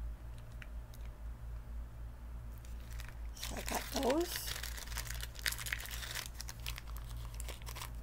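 A plastic wrapper crinkles close by as it is handled.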